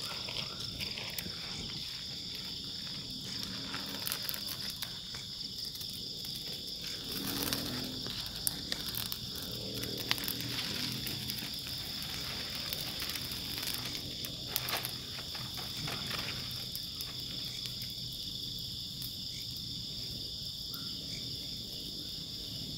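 Burning palm leaves crackle and pop.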